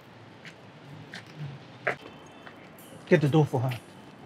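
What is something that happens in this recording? Men talk outdoors nearby.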